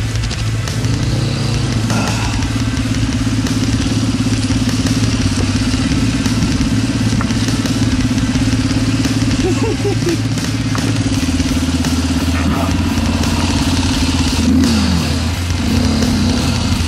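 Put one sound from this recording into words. A dirt bike engine idles and revs loudly close by.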